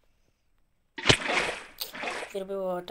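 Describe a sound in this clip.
Water splashes as it pours out of a bucket.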